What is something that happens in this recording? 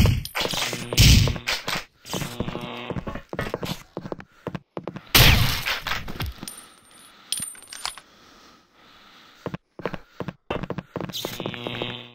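Gunshots ring out in quick bursts, echoing.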